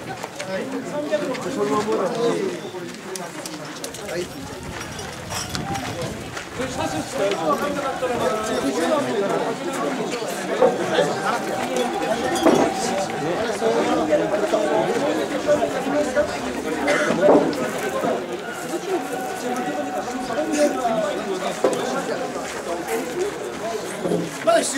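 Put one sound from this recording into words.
A crowd of men and women talk and call out outdoors.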